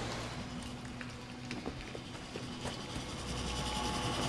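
Heavy footsteps splash slowly over wet ground.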